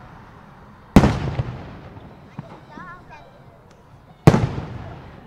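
Loud firework explosions boom and echo outdoors.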